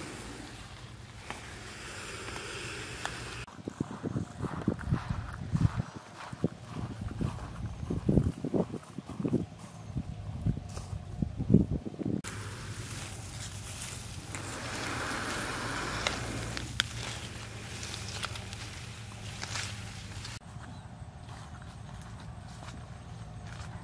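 Wind rustles grass and leaves outdoors.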